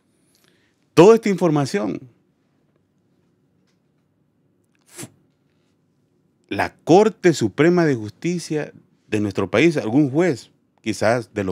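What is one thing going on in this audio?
A man speaks forcefully into a close microphone.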